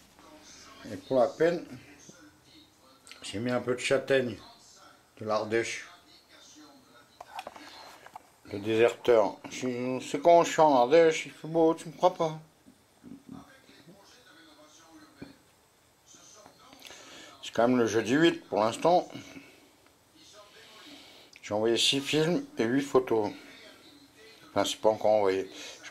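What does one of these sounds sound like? An elderly man talks calmly close by, in bursts with pauses.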